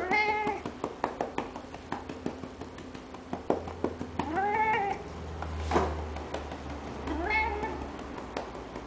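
A cat meows loudly several times, close by.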